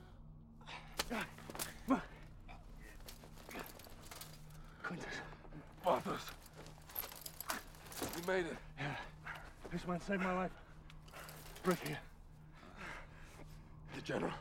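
Metal armour clanks and scrapes.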